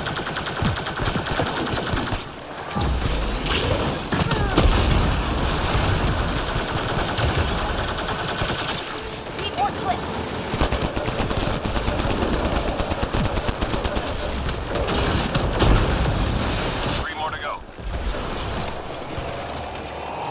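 Rifle gunfire crackles in rapid bursts.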